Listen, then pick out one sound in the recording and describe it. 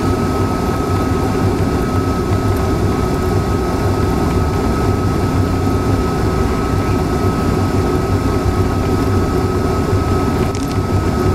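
Tyres roll on a road with a steady roar.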